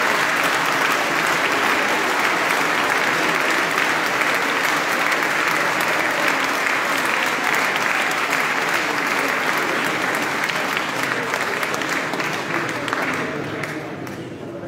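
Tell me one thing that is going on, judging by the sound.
An audience claps loudly in a large echoing hall.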